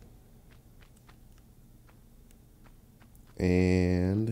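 Light footsteps patter quickly on stone.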